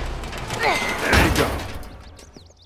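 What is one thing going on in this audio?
A heavy blow lands on a body with a loud thud.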